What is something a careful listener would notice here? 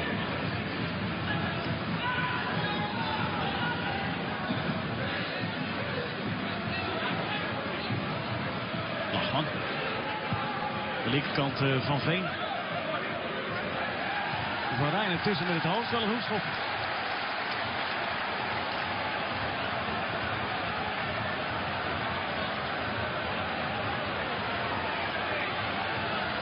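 A large crowd murmurs and cheers steadily outdoors.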